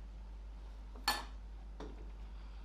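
A clay ring knocks lightly on a wooden board.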